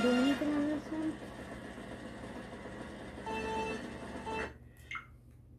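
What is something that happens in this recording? Video game music plays from a television speaker.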